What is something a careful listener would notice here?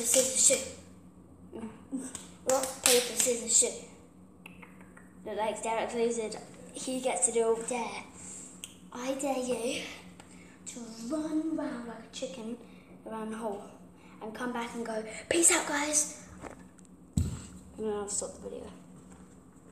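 A young girl talks and sings close by with animation.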